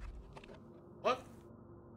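A case lid swings open with a creak.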